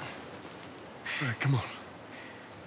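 A man speaks briefly with effort.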